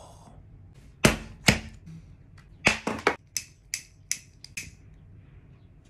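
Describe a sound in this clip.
A lighter clicks several times.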